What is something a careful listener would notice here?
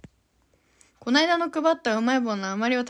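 A young woman speaks close by, in a high animated voice.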